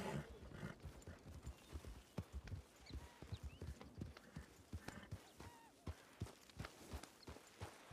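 A horse's hooves thud at a steady trot.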